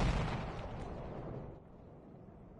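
A loud explosion rumbles and slowly fades.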